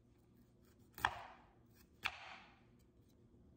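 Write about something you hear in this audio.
A knife chops through ginger on a wooden board.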